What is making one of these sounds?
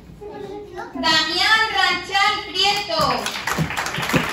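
A woman announces loudly in an echoing room.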